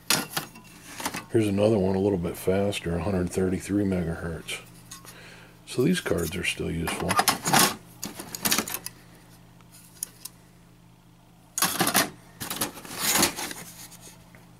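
Circuit boards clatter and scrape against each other in a cardboard box.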